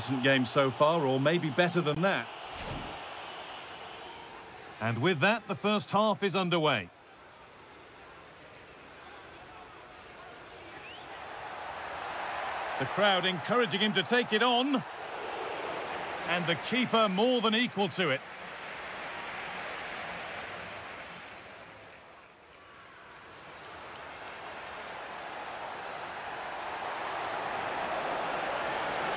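A large stadium crowd roars and cheers, swelling and fading in waves.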